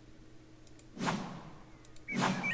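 A soft whoosh sounds as a game menu closes.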